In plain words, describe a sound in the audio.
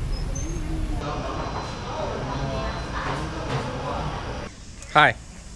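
People chatter at tables in a busy room.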